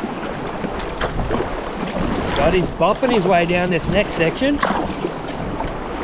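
A paddle splashes and dips into water.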